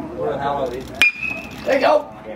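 A metal bat cracks against a baseball.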